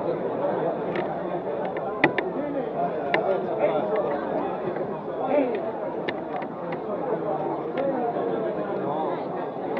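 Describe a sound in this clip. A man laughs and calls out nearby.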